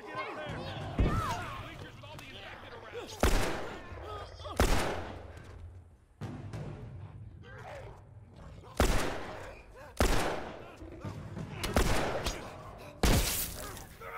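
Gunshots ring out loudly, one at a time.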